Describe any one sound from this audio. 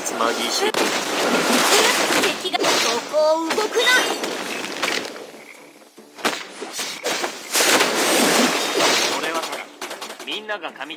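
Video game spell effects whoosh and crackle in rapid bursts.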